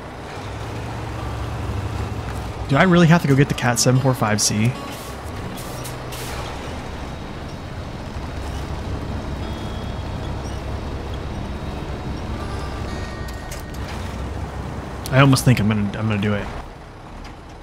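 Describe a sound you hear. A truck's tyres churn through mud and water.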